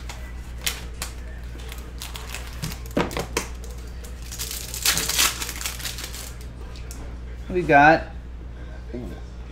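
Cardboard and cards rustle and tap under handling.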